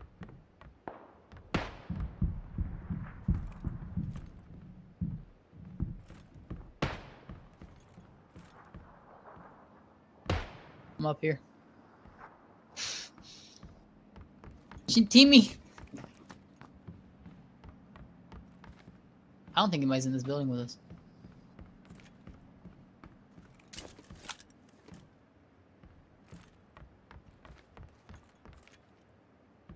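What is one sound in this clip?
Footsteps thud on wooden floors indoors.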